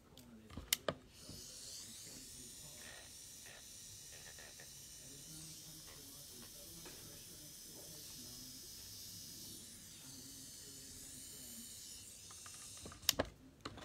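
An electric nail file whirs steadily with a high hum.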